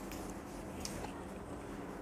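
An eraser wipes across a whiteboard.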